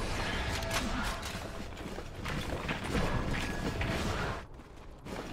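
Creatures clash and fight.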